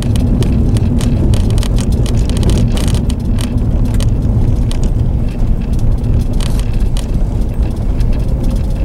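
Tyres crunch and rattle over gravel.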